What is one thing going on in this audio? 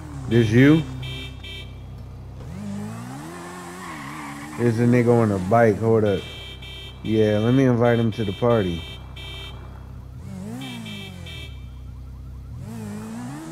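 A motorcycle engine revs up and down nearby.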